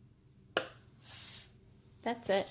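Card rustles and slides as it is moved.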